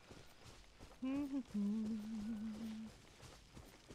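A man sings a few drawn-out notes close to a microphone.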